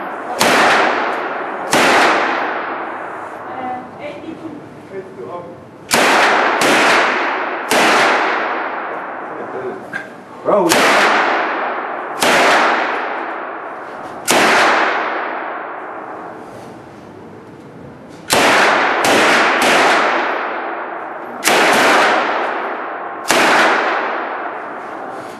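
Rifle shots crack loudly one after another, echoing through a large indoor hall.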